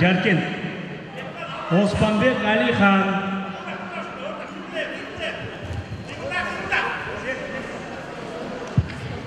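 Feet shuffle and thump on a wrestling mat.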